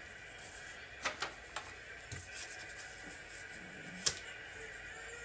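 A stiff card is picked up and tapped down on a table with light clicks.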